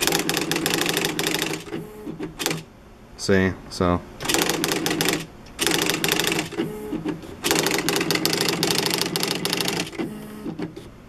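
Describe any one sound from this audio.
An electric typewriter types in rapid bursts of clacks.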